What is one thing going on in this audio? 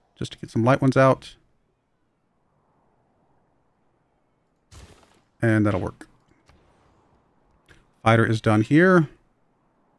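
A man speaks casually into a close microphone, in short bursts with pauses.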